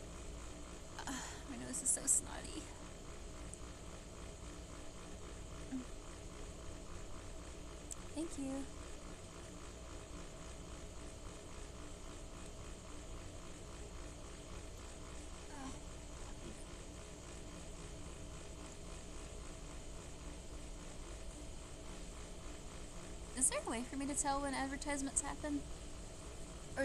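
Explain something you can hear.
A young woman speaks softly close by.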